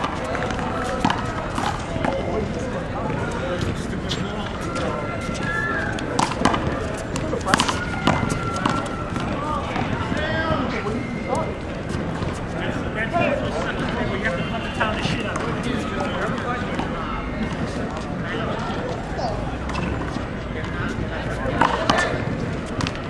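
A ball smacks against a wall with sharp echoing hits.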